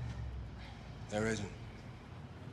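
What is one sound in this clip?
A young man answers briefly in a low voice nearby.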